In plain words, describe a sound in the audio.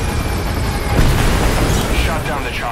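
A helicopter explodes with a loud blast.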